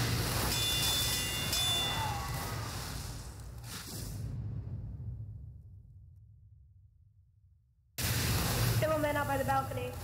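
A flamethrower roars in a video game.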